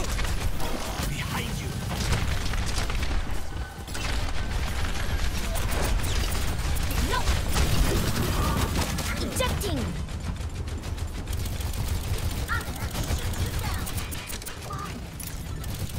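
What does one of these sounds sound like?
Rapid gunfire from a video game crackles in quick bursts.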